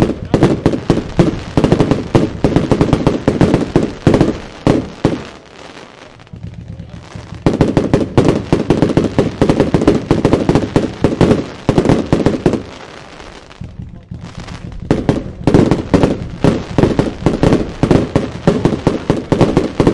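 A firework cake fires shells in rapid succession.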